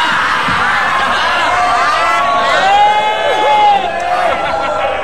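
A man laughs loudly into a microphone.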